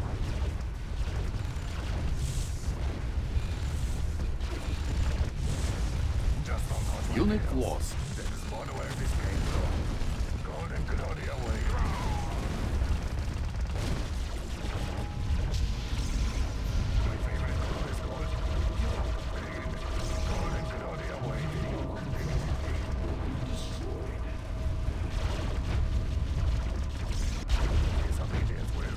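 Explosions and gunfire rumble and crack throughout a battle.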